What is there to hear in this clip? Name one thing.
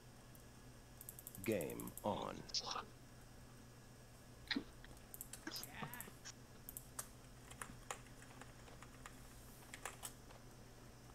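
Short game interface clicks sound.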